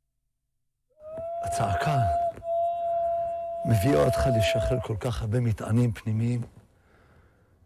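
An elderly man speaks with strong emotion.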